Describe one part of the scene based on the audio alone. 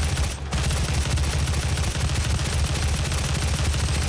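A shotgun blasts.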